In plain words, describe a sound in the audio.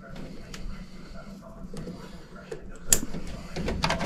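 A plastic wire connector snaps together with a click.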